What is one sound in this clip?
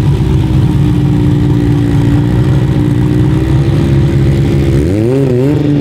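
A car engine idles with a loud, rough rumble.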